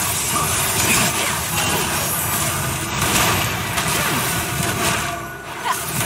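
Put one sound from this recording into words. Spell effects crackle and whoosh in a busy battle.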